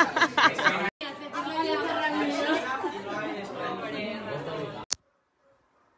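A girl laughs and talks with animation close by.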